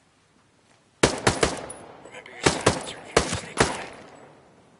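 Suppressed gunshots fire in quick bursts.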